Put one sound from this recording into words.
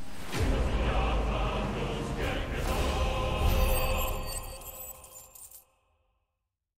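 A deep magical blast booms and rumbles, then fades away.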